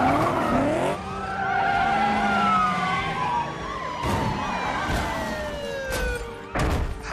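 Tyres screech as a car skids and drifts.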